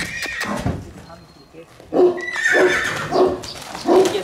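Horse hooves thud on dirt.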